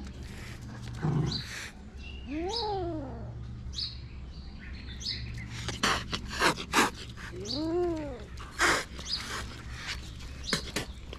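A kitten hisses and spits sharply, close by.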